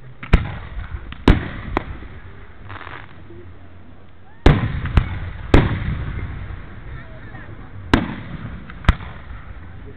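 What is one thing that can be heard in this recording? Fireworks burst with loud booming bangs that echo away.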